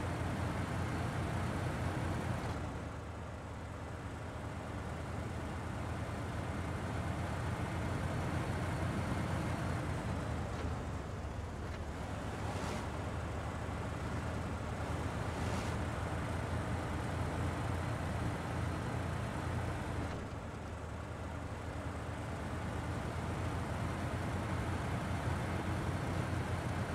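A heavy diesel truck engine rumbles and roars steadily.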